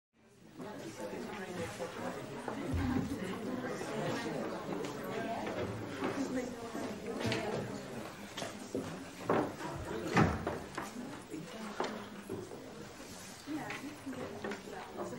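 A crowd of men and women murmur and chatter quietly nearby.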